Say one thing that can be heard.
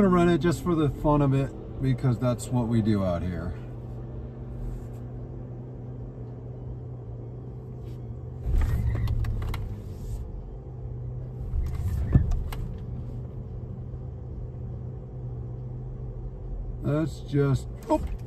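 A car's electric motor hums steadily from inside the cabin.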